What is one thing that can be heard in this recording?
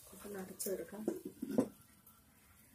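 A clay lid clunks down onto a pot.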